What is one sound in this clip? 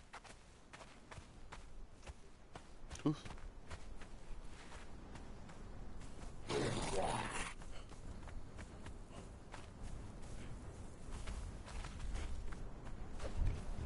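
Footsteps thud softly on sand at a steady run.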